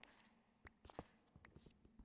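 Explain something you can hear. A stone block crumbles with a short crunching sound.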